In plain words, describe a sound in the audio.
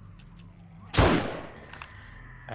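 A rifle fires a single loud shot that echoes briefly.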